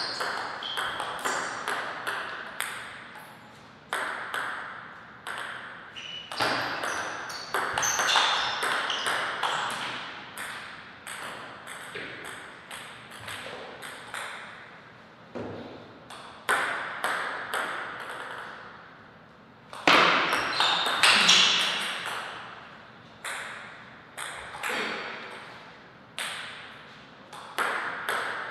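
A table tennis ball clicks rapidly back and forth off paddles and the table, echoing in a large hall.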